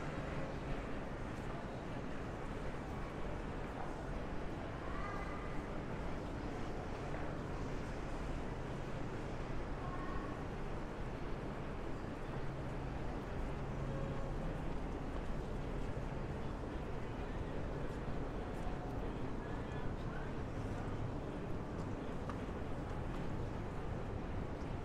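Distant voices and bustle murmur steadily outdoors.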